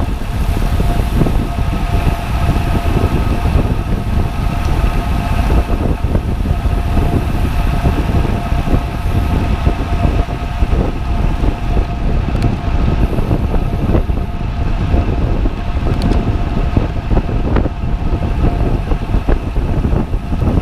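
A bicycle freewheel whirs with a steady tone.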